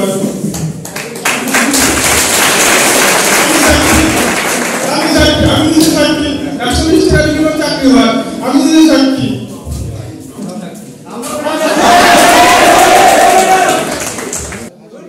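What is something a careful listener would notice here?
A young man sings into a microphone, heard through loudspeakers in an echoing hall.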